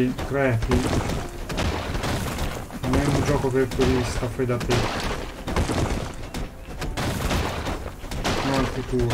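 A man talks with animation into a microphone close by.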